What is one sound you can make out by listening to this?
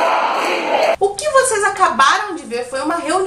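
A young woman speaks clearly and with animation, close to a microphone.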